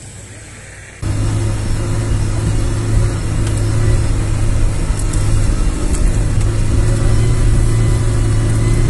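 A car engine drones steadily while driving.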